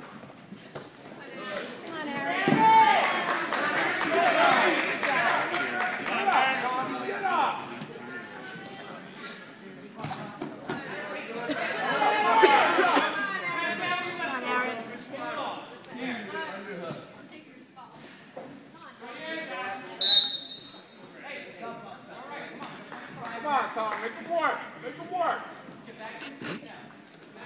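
Spectators shout and cheer loudly from close by.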